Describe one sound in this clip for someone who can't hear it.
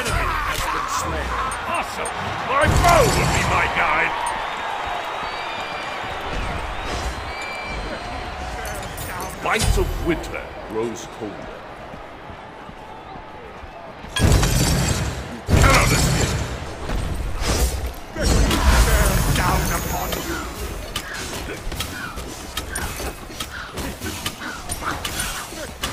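Weapons clash and magic blasts burst in a fight.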